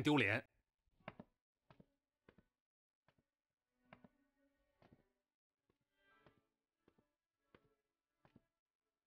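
Footsteps knock on a wooden floor in a quiet room.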